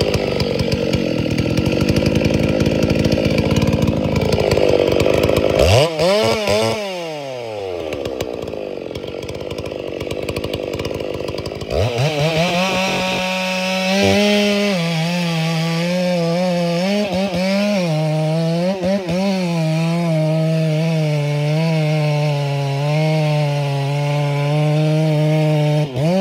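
A large two-stroke chainsaw cuts at full throttle through a thick log.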